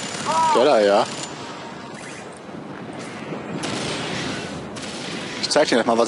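Explosions boom and roar.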